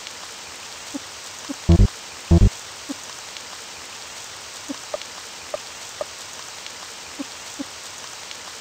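Short electronic menu blips sound as selections change.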